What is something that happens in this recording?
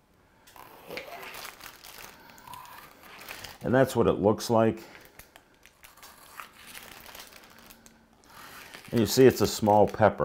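A knife cuts through a pepper on a cutting board.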